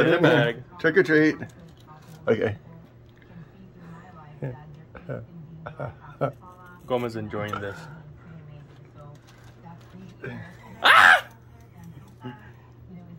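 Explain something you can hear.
A man speaks and laughs close by.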